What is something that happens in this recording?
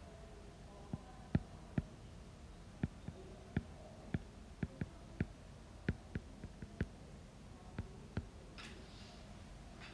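A stylus taps and scratches on a writing tablet.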